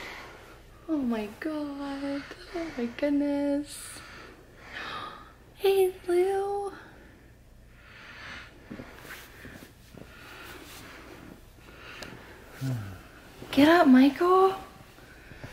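A puppy whimpers and yelps up close.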